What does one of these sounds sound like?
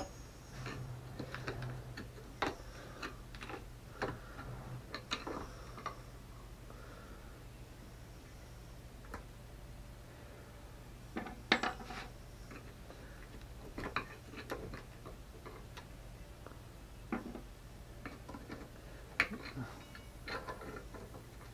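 Small metal parts clink and tap.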